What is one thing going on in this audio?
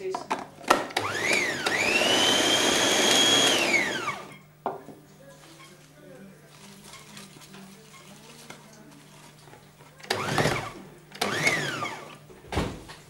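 A blender whirs loudly, revving up and winding down.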